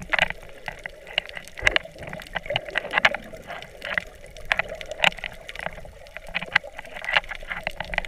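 Swim fins swish through the water nearby, heard from underwater.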